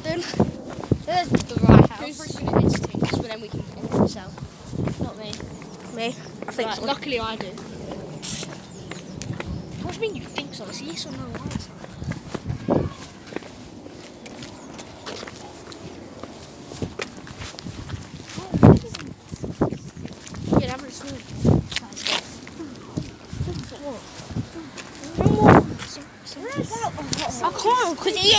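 A boy talks close by, with animation.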